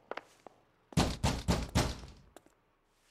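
A fist knocks loudly on a wooden door.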